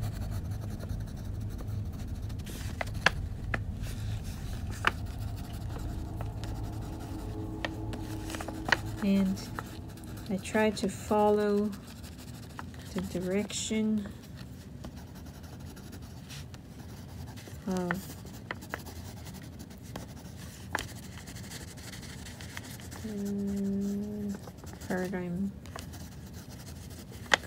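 A crayon scratches and scrubs on paper.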